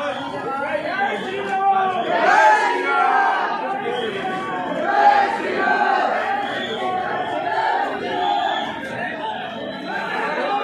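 A crowd of men talk and shout over one another nearby, outdoors.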